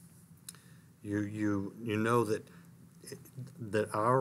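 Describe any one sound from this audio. A middle-aged man speaks calmly and with animation into a close microphone.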